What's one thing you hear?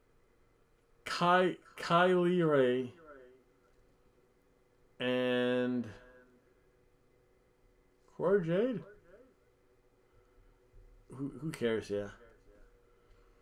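A man speaks animatedly in short bursts, close to a microphone.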